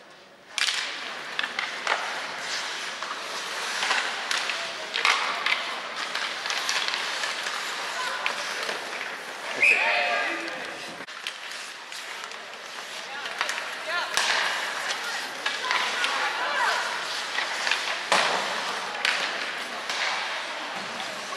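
Skates scrape and carve across the ice in a large echoing arena.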